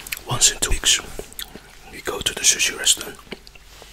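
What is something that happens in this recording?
A man speaks softly and close to a microphone.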